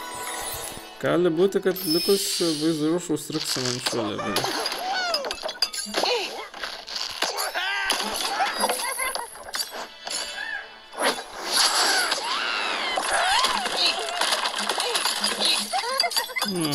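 A slingshot stretches and snaps.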